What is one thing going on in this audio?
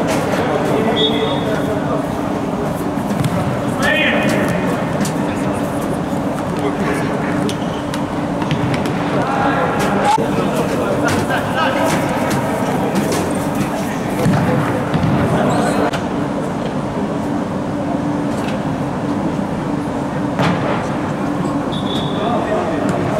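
Sports shoes squeak sharply on the court floor.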